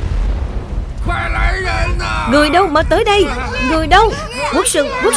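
A man shouts urgently for help.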